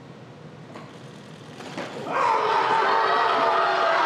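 Barbell plates clank as a weight is lifted.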